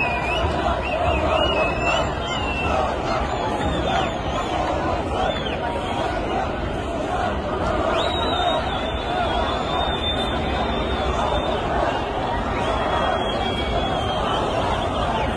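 Whistles shrill from the crowd.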